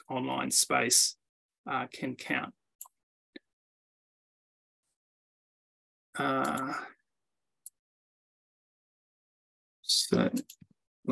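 A man speaks calmly in bursts over an online call, with pauses between phrases.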